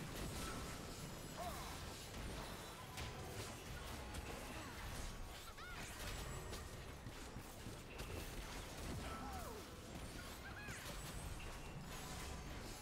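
Game fighters clash with rapid magical blasts and hits.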